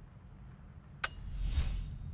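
A sharp menu click sounds.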